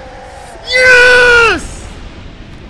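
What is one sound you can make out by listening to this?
A young man shouts loudly in triumph into a close microphone.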